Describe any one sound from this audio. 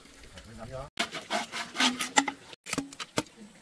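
A saw rasps through bamboo.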